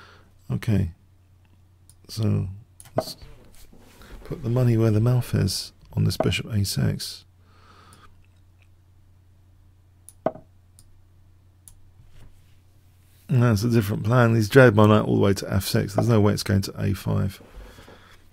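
An older man talks into a close microphone with animation, in bursts with pauses.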